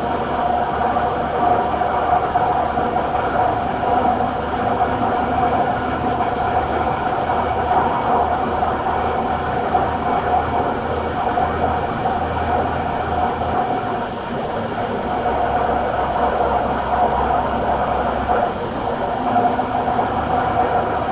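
A diesel truck engine drones at a cruise on a highway, heard from inside the cab.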